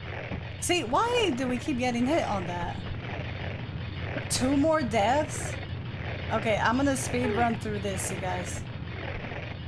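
A young woman talks with animation through a microphone.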